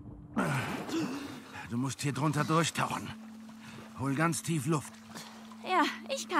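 Water splashes around a swimmer.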